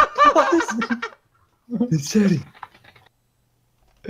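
A young man laughs into a headset microphone.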